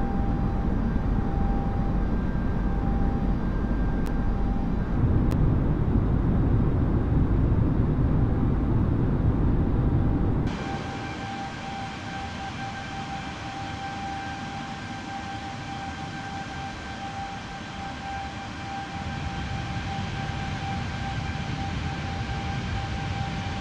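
A jet engine whines with a steady high tone.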